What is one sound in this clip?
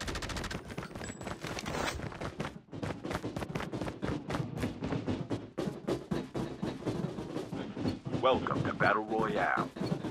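Footsteps crunch quickly on hard ground.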